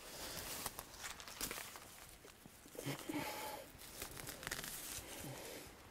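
Plants rustle as a man pulls at them.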